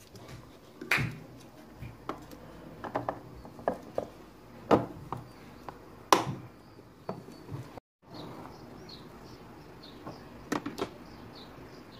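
A plastic lid clicks and snaps onto a container.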